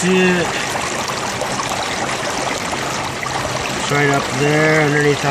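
Shallow water ripples and trickles steadily over stone close by.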